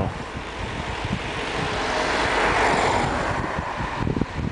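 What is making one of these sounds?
A car passes by in the opposite direction with a rushing swell.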